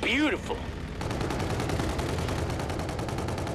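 A rapid-fire gun shoots in a fast, steady stream.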